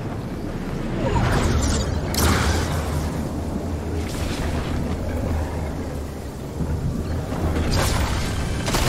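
A low storm wind rumbles and whooshes.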